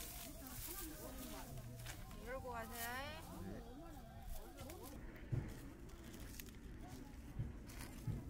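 A plastic bag rustles and crinkles.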